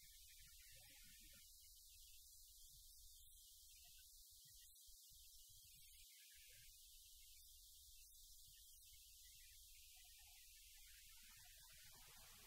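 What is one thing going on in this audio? Footsteps shuffle softly on a hard floor.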